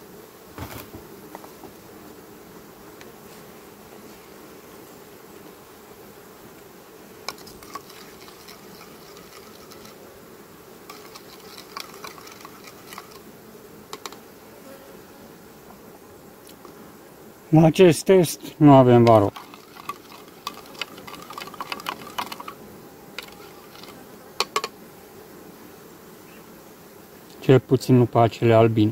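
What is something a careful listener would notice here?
Bees hum steadily close by.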